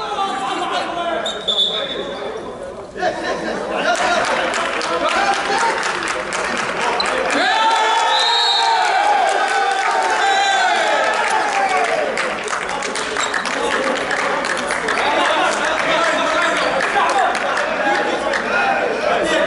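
Men call out and chatter in a large echoing hall.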